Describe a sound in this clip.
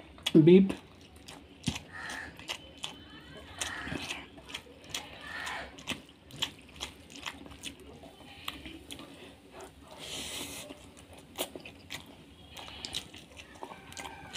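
A man chews noisily, with wet smacking sounds.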